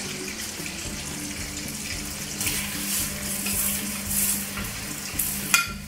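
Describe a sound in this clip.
Hot oil sizzles steadily in a frying pan.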